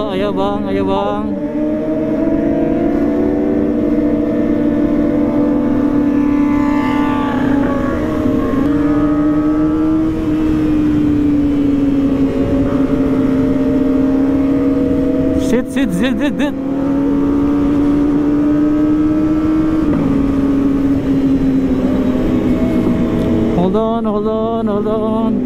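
Wind rushes past a rider at speed.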